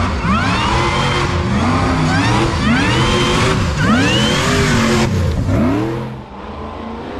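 An off-road buggy engine revs hard close by, rising and falling.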